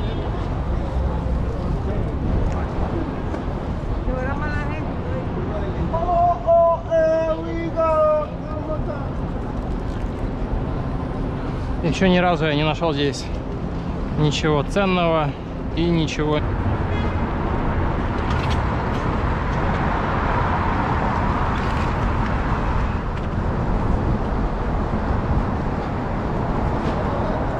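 Traffic hums steadily along a city street.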